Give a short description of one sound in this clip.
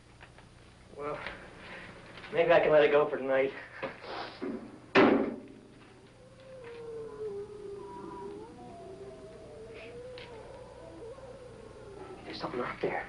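A man speaks nearby in a conversational tone.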